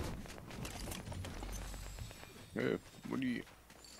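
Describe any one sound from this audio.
A treasure chest creaks open with a chiming sound.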